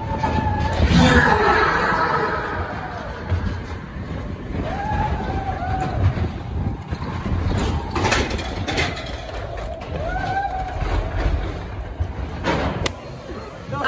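Riders scream and cheer as the coaster speeds along.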